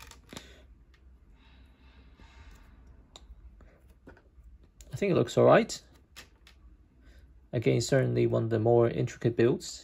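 Small plastic pieces click together.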